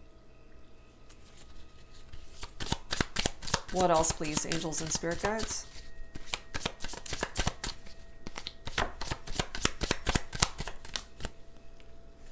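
Cards are shuffled with quick, rapid flicking.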